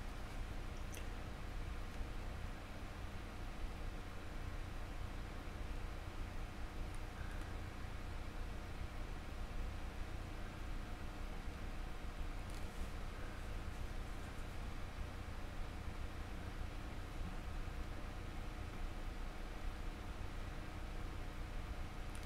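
A paintbrush softly brushes against a model.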